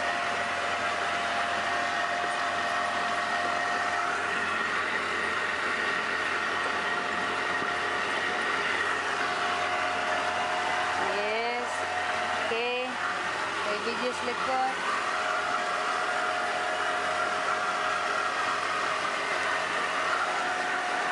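A boat's outboard motor drones steadily.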